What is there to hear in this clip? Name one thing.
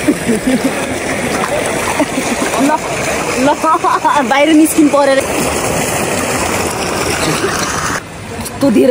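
Water sloshes and splashes as a person wades through a pool.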